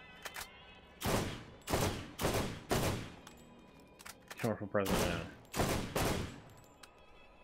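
Loud gunshots fire in bursts.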